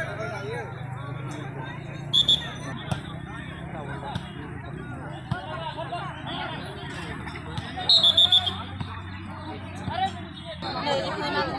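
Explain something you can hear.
A ball thuds as players hit it.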